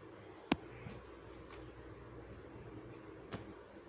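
Fabric rustles softly as hands fold it.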